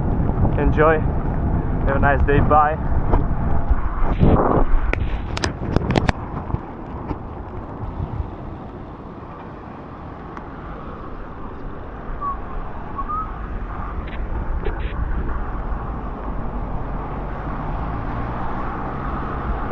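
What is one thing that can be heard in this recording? Bicycle tyres hiss on a wet road.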